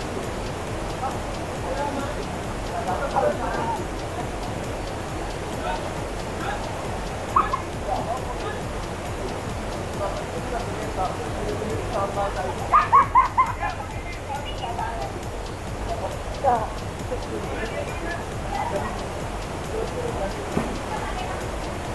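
Young men and women talk and shout over the water.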